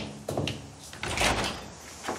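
A door latch clicks as a door handle turns.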